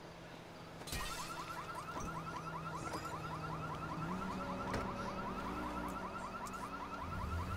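A sports car engine starts and revs.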